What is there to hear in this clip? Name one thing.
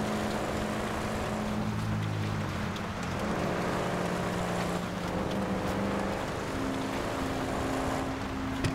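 Tyres hiss over snow.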